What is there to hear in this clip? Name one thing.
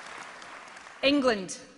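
A middle-aged woman speaks calmly into a microphone over a loudspeaker.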